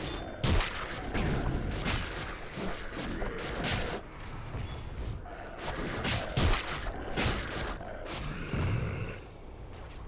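Game spell effects crackle and boom during a fight.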